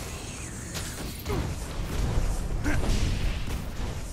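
A magical blast bursts with a sharp crackle.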